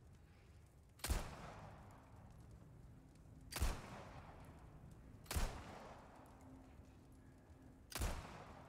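A pistol fires single loud shots that echo and fade.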